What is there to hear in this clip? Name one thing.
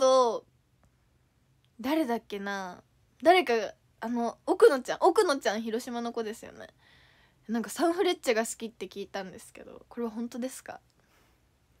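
A young woman talks cheerfully and close to a microphone.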